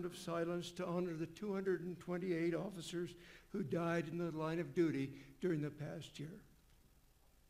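An elderly man speaks slowly and steadily into a microphone.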